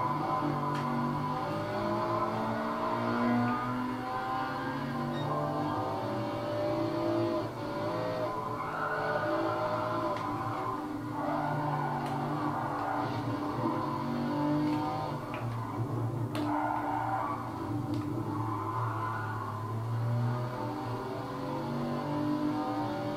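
A racing car engine roars and shifts gears through a television's speakers.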